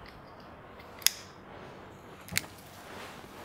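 A lighter clicks and flicks.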